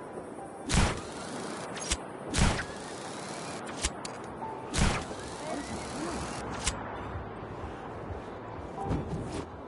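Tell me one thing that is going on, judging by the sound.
Wind rushes past steadily as a parachute glides down.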